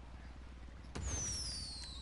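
A firework whistles as it launches.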